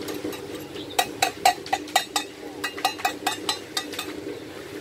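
A hoe scrapes and knocks into soil.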